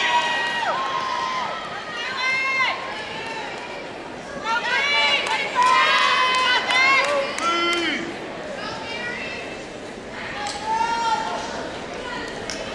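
A squad of teenage girls shouts a cheer in unison in a large echoing gym.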